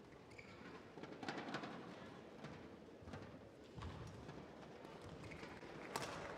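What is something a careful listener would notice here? A shuttlecock is struck sharply by rackets.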